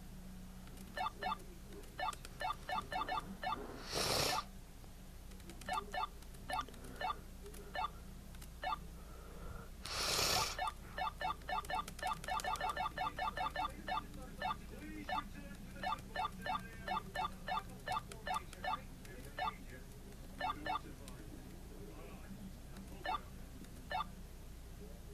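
Short electronic hop blips from a video game repeat in quick runs.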